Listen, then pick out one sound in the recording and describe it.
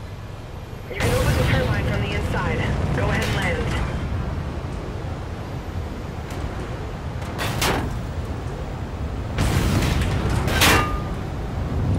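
Thrusters roar in short bursts.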